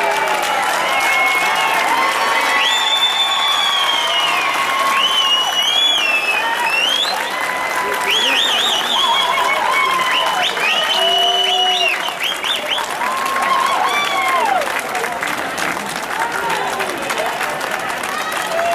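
Fireworks crackle and hiss loudly and steadily.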